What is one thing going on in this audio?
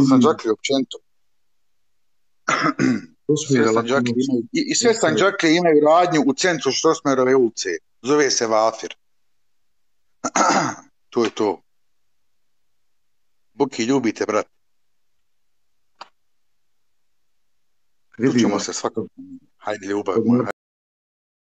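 A man talks with animation over an online call, in bursts with pauses.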